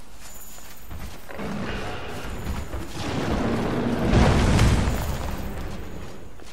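Footsteps rustle quickly through grass and brush.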